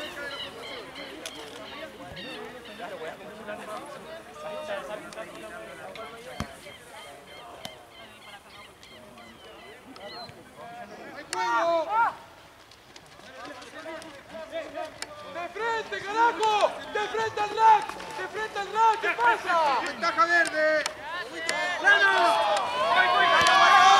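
Young men call out and shout to each other outdoors.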